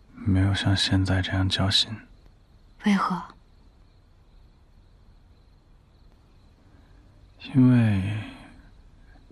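A young man speaks softly, close by.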